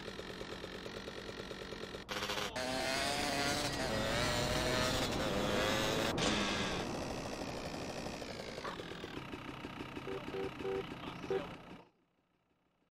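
A motorbike engine revs and roars along.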